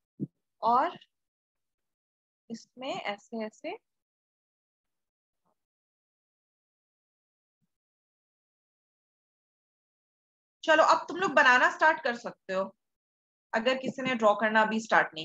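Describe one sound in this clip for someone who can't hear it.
A young woman speaks calmly into a microphone, explaining, with long pauses.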